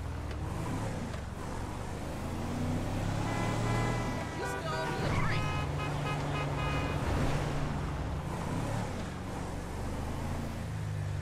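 A car engine hums steadily as a car drives along.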